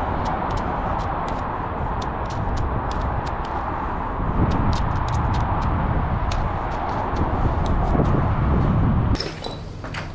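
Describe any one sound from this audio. A marker squeaks and taps against a metal surface.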